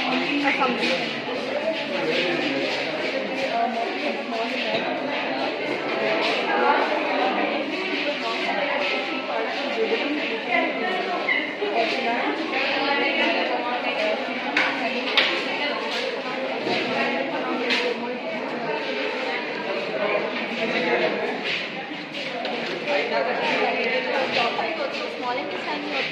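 Several young people talk over one another.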